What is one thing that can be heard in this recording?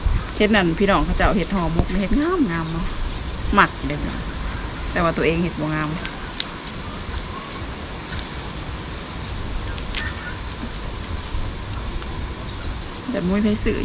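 A young woman talks calmly close by.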